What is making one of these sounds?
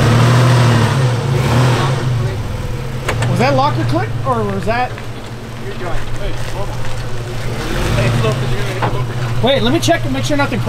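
A vehicle engine idles and revs with a low, steady rumble.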